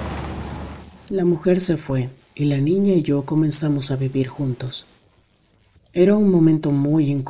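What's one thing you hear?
A man speaks slowly in a deep voice, close to a microphone.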